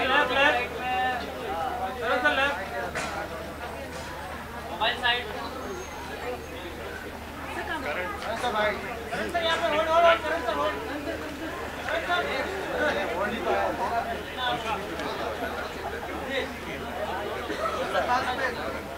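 Many people chatter and call out all around.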